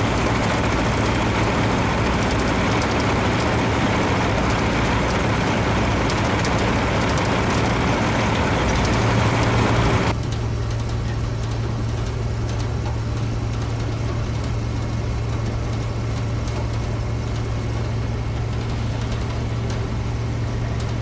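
A conveyor rattles and clatters loudly as it drops material into a truck trailer.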